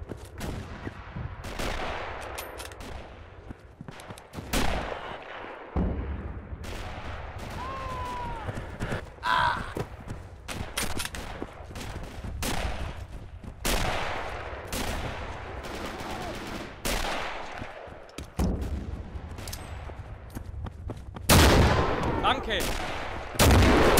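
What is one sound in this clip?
Boots thud quickly on the ground as a man runs.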